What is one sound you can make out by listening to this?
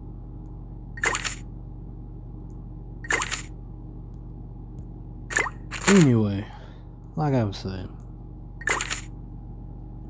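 Short game menu chimes ring with each button tap.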